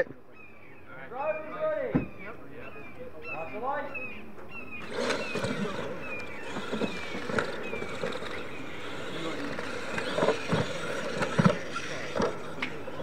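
Small electric truck motors whine and rev as the trucks drive over dirt.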